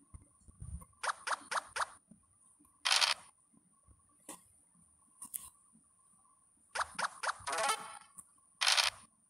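Quick bright blips sound in a row as game pieces hop forward.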